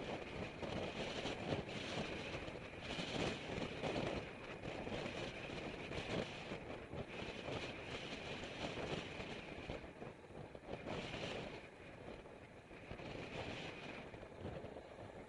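Wind rushes loudly past a moving bicycle outdoors.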